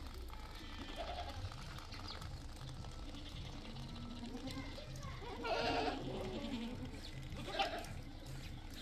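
Goats bleat nearby.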